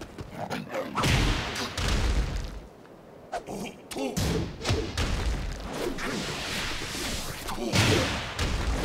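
Heavy punches and kicks thud and smack in quick bursts.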